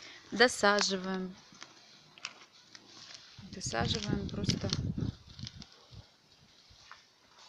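A hand scrapes and rustles through loose soil.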